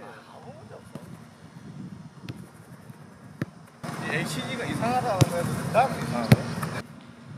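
A football is kicked on artificial turf.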